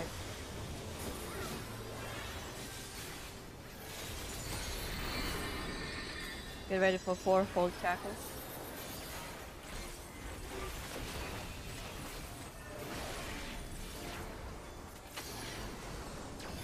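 Video game battle effects clash and whoosh steadily.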